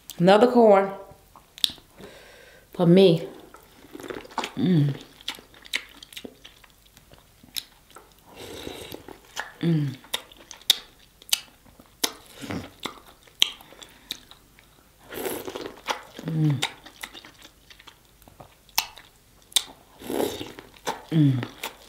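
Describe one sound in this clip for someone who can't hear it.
A young woman bites and chews food loudly, close to a microphone.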